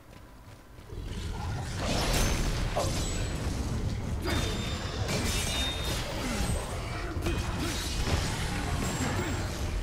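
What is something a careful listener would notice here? Blades swing and clash in a fight.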